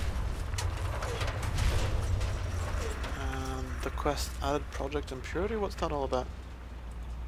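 A giant robot hums with a low mechanical drone.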